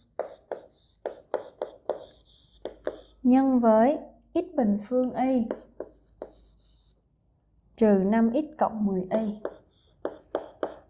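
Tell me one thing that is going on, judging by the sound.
A woman speaks calmly and clearly close to a microphone.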